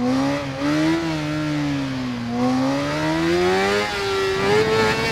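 An inline-four sport bike engine revs higher as the bike accelerates out of a corner.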